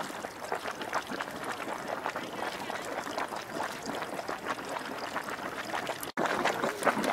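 Thick mud bubbles and plops softly.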